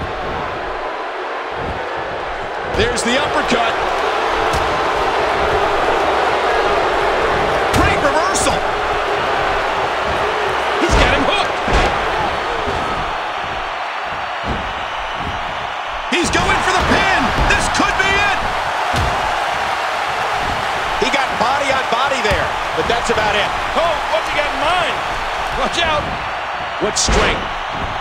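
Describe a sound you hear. A crowd cheers and roars steadily in a large arena.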